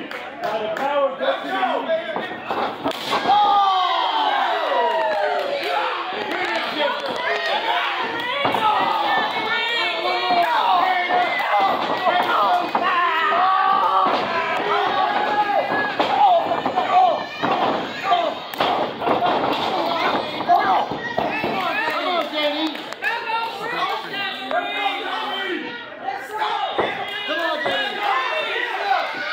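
A crowd of men and women shouts and cheers loudly in an echoing hall.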